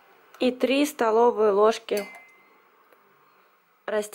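Oil trickles from a bottle into a metal spoon.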